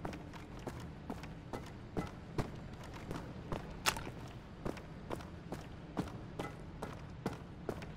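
Footsteps clank steadily on a metal grating.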